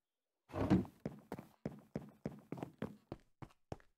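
Footsteps tap steadily on hard floor.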